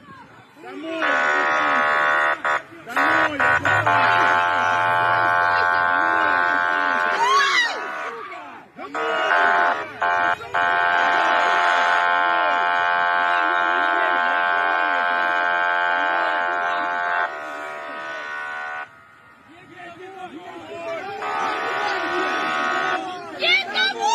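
A heavy truck's horn blares in long bursts.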